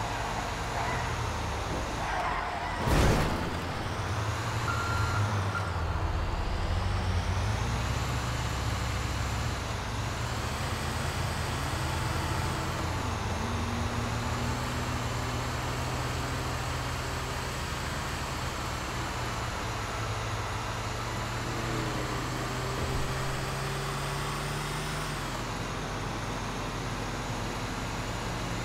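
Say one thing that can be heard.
A heavy truck engine drones steadily as it drives.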